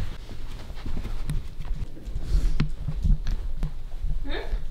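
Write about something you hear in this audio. Footsteps thud on carpeted stairs and a wooden floor.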